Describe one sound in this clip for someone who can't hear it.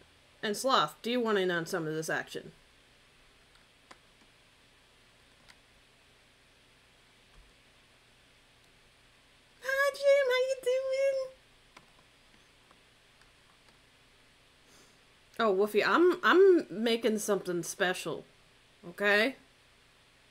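A young woman speaks with animation into a close microphone, in bursts with pauses.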